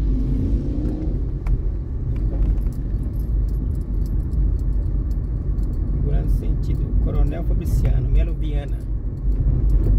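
A car drives on an asphalt street, with a low rumble heard from inside the car.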